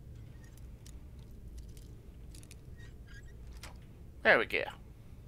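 A lockpick scrapes and clicks inside a lock.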